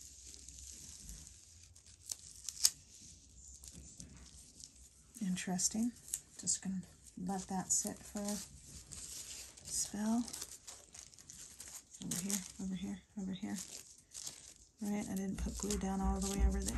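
Gloved hands rub and smooth thin paper with a soft rustle.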